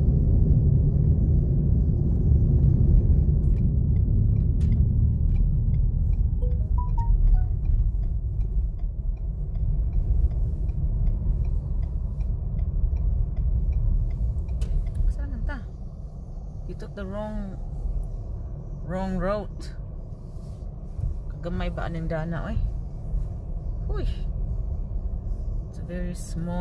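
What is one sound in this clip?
A car engine hums with road rumble from inside the car, louder at speed and quieter as it slows.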